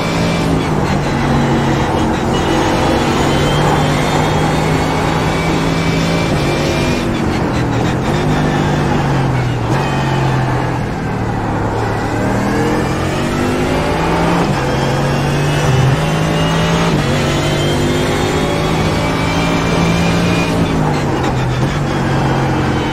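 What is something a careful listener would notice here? A racing car engine roars loudly, rising in pitch through the gears and dropping as it slows for corners.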